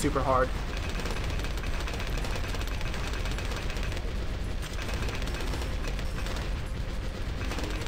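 Explosions crackle and boom steadily.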